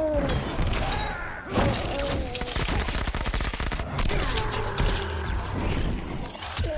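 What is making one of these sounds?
Magic energy blasts crackle and whoosh.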